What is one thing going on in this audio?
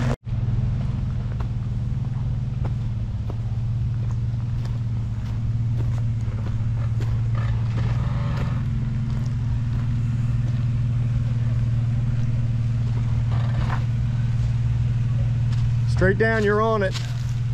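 An off-road vehicle's engine rumbles steadily at a low idle.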